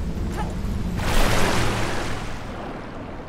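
Water splashes loudly as a body dives in.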